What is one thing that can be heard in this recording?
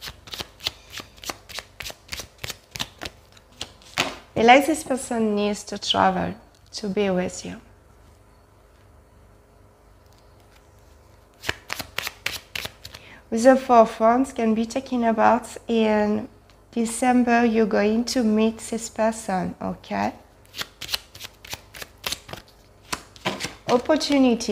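Cards are shuffled with quick, even flicks.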